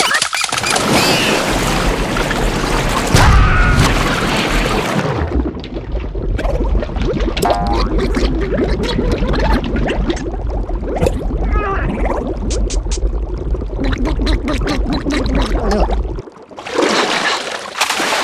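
Water splashes loudly at the surface.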